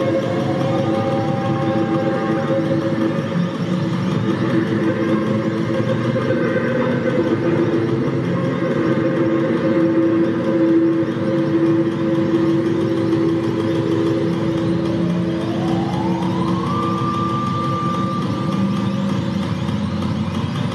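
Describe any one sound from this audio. Electronic music with drums and keyboard tones plays loudly through loudspeakers in a large echoing hall.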